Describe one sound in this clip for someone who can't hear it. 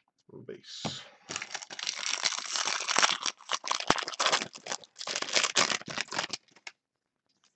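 A plastic wrapper crinkles and tears loudly, close by.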